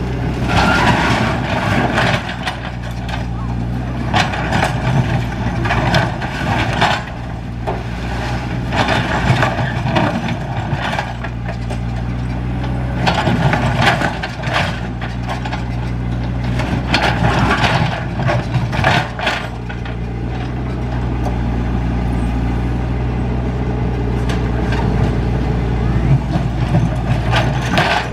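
A diesel excavator engine hums steadily close by.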